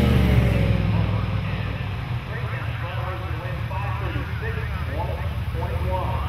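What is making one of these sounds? A car engine roars as the car speeds away into the distance.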